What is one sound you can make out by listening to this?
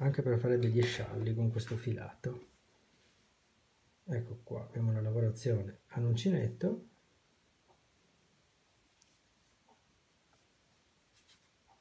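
Yarn and knitted fabric rustle softly as they are handled.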